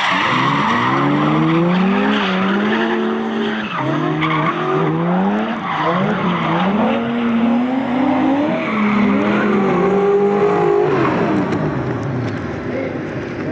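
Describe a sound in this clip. Car engines rev hard, their pitch rising and falling quickly.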